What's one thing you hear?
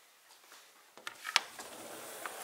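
A sliding glass door rattles open along its track.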